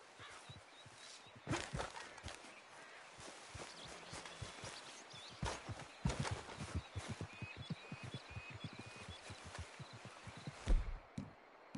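Footsteps thud quickly through tall grass.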